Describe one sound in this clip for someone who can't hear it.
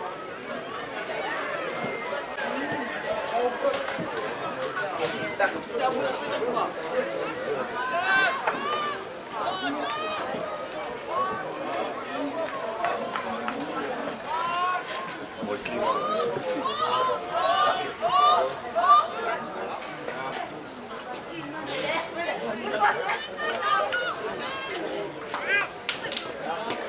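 A crowd of spectators chatters and calls out in the background.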